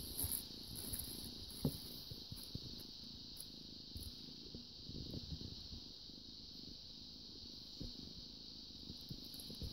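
A kitten scuffles on a carpet.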